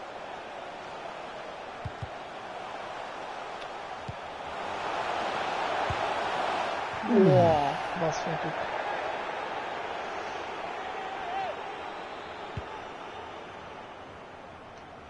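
A large stadium crowd roars steadily, swelling and then fading.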